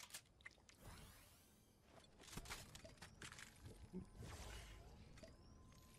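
Game sound effects whoosh and chime.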